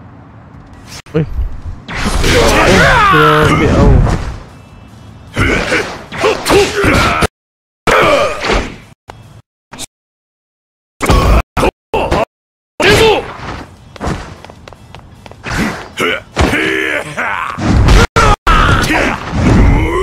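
Punches and blasts from a fighting game thud and crash.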